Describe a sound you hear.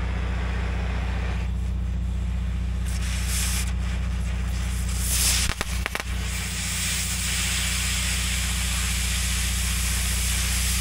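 A cutting torch roars and hisses steadily.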